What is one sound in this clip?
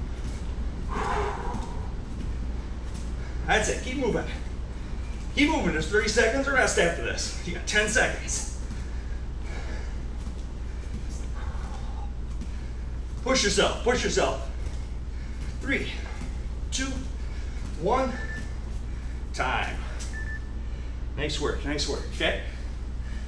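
A martial arts uniform snaps and swishes with quick kicks and punches.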